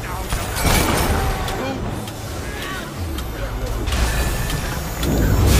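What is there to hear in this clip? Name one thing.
Magic blasts and spell effects whoosh and crackle.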